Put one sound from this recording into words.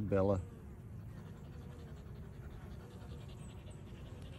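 A dog runs through tall dry grass, rustling the stalks.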